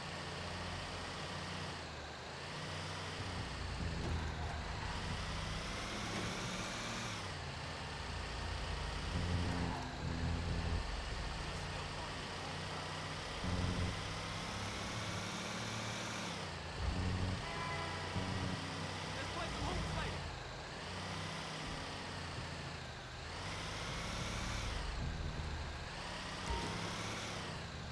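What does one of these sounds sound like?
A truck engine rumbles and revs up and down as the truck drives along a road.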